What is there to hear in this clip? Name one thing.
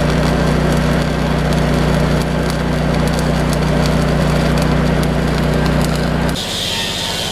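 An arc welder buzzes and crackles steadily.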